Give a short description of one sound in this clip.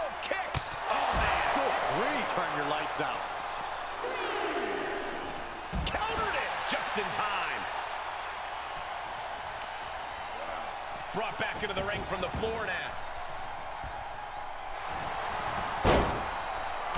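Bodies slam heavily onto a wrestling ring mat with loud thuds.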